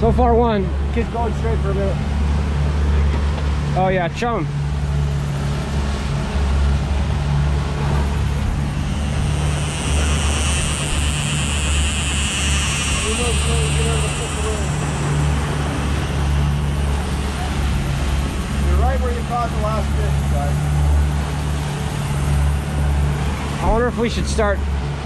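Boat engines drone steadily throughout.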